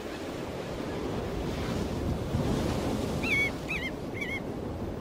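Sand scrapes and rustles as a turtle digs.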